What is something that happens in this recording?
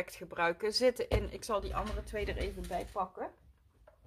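A plastic jar is set down on a table with a light knock.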